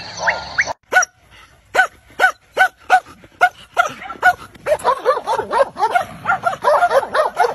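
A dog barks repeatedly up close.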